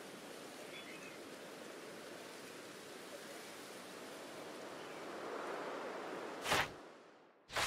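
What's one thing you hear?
Wind blows softly outdoors.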